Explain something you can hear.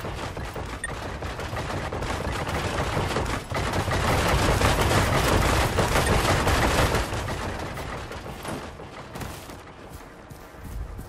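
Heavy rain and wind rush steadily, then fade.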